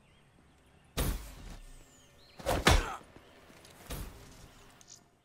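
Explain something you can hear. Gunshots fire in short, sharp bursts.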